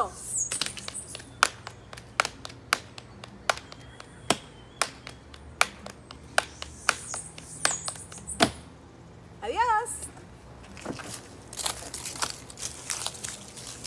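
A woman claps her hands in a steady rhythm.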